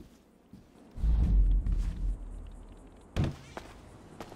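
A door opens with a heavy thud.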